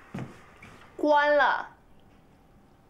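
A young woman speaks firmly.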